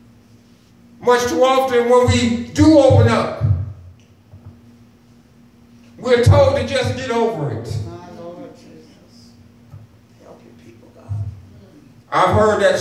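A middle-aged man preaches with passion through a microphone and loudspeakers, in bursts with pauses.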